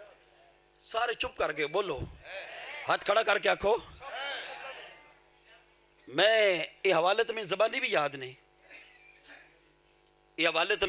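A middle-aged man preaches passionately through a microphone and loudspeakers, his voice echoing.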